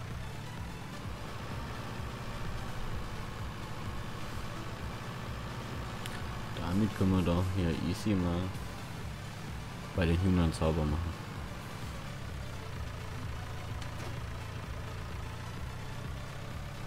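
A diesel engine of a loader hums steadily at idle.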